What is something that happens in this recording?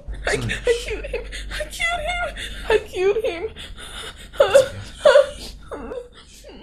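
A young woman sobs and speaks through tears, close by.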